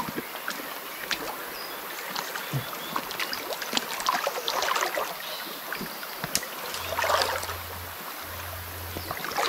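A stream flows and gurgles.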